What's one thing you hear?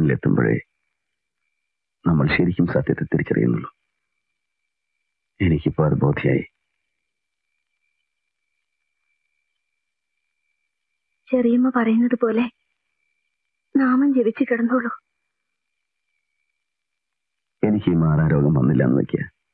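A man speaks in a low, emotional voice, close by.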